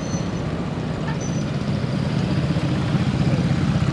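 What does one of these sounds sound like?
Motor scooters hum nearby in traffic.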